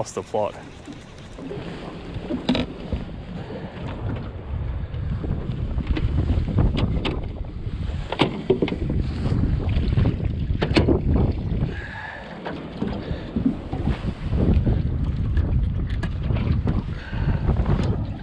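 Small waves slap against the hull of a boat.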